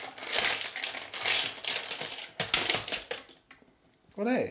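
Small hard pieces rattle and clink in a plastic funnel.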